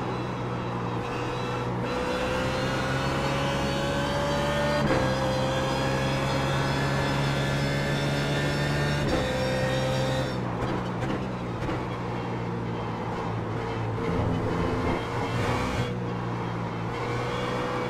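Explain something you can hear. Other racing car engines drone close by.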